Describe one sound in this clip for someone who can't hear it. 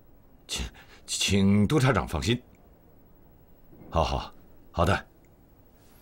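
A middle-aged man speaks calmly into a telephone nearby.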